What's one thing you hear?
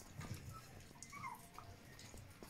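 A puppy whimpers softly.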